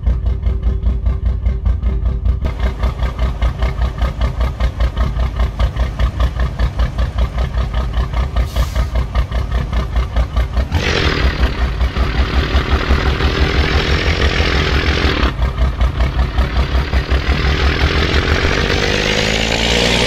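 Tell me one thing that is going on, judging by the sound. A heavy truck engine rumbles with a deep, throbbing beat.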